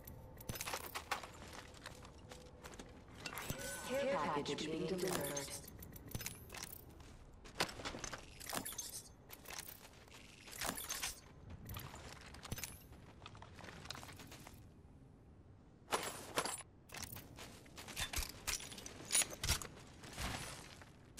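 Footsteps patter quickly on the ground.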